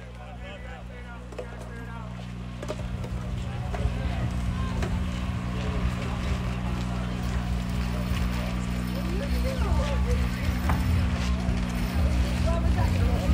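Distant players shout and call to each other across an open field.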